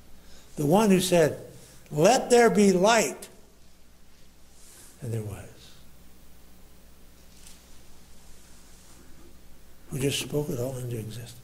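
A man preaches with emphasis through a microphone in a reverberant room, pausing between phrases.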